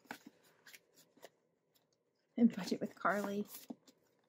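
Plastic binder pages rustle and crinkle under handling.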